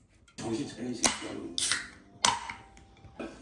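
A drink can snaps open with a sharp hiss.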